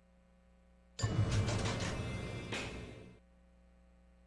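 A brief rich jingle plays.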